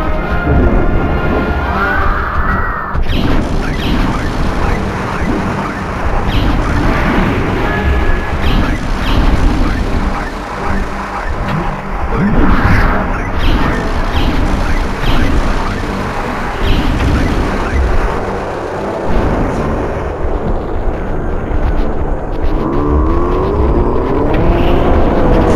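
Cartoonish fighting game effects thump and zap rapidly.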